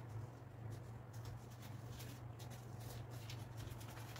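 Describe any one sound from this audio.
A plastic bag of bread rustles and is set down on a table.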